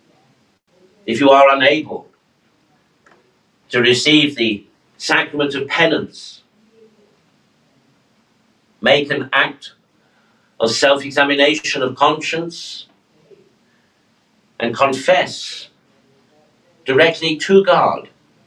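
A middle-aged man speaks calmly and slowly into a microphone, pausing between phrases.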